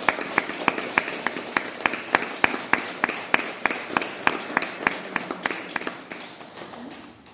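An acoustic guitar is strummed in a steady, quick rhythm, fading toward the end.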